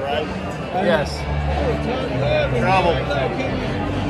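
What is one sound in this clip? A middle-aged man laughs close by.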